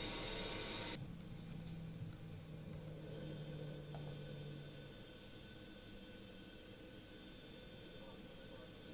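Jet engines hum steadily inside an airliner cabin.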